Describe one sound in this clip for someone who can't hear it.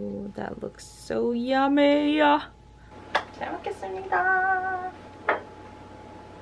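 A young woman speaks cheerfully and sings out close by.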